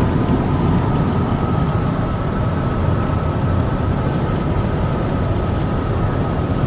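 Wind rushes loudly past the car.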